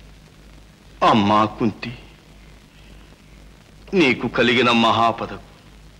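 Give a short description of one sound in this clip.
An elderly man speaks dramatically in a deep, forceful voice.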